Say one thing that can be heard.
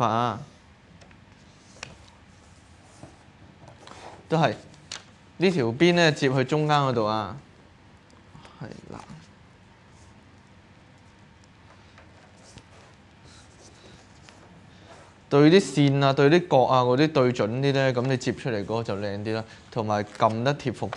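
Paper rustles and creases softly.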